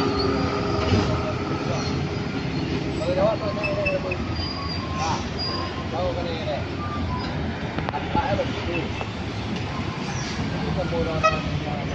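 Vehicle engines rumble steadily on a road outdoors.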